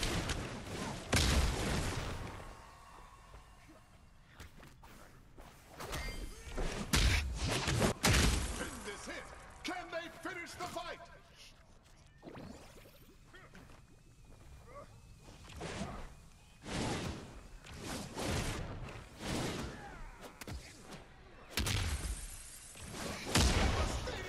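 Game punches and impacts land in loud, sudden bursts.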